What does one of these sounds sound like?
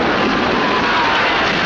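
Gunfire crackles.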